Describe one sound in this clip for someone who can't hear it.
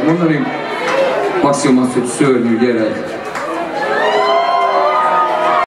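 A rock band plays loudly in a large echoing hall.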